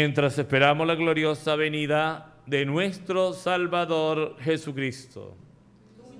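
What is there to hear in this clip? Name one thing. A man sings a chant into a microphone.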